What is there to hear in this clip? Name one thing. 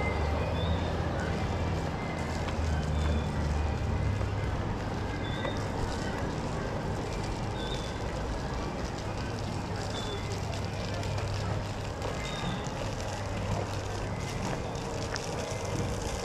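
Footsteps scuff on a paved path outdoors.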